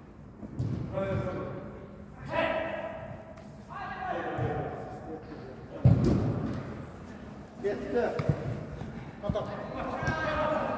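Young men shout and call to each other in a large echoing hall.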